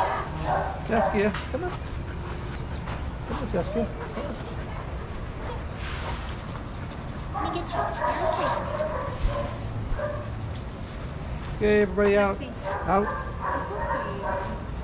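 Dogs bark and whine nearby.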